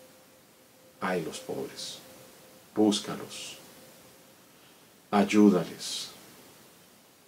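An elderly man speaks calmly and slowly close to a microphone, in short phrases with pauses.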